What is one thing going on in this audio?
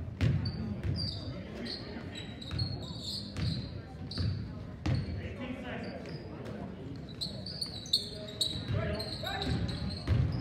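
A crowd murmurs and calls out from the stands.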